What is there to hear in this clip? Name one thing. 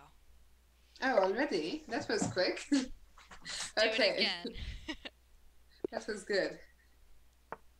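Two young women laugh close to a microphone.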